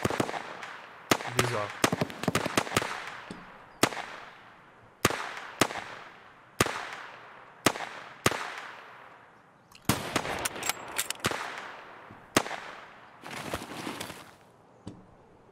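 Rifle shots ring out one after another, echoing through the woods.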